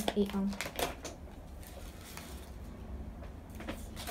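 A thin, dry rice paper sheet crackles softly as it is lifted.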